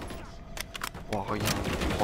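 A rifle magazine is swapped with metallic clicks.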